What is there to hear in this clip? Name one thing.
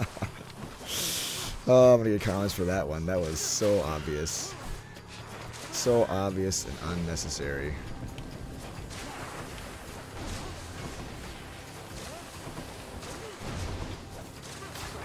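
Video game combat effects whoosh and clash.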